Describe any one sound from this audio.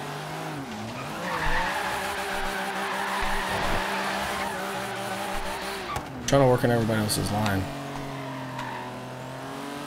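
A car engine revs hard and steadily.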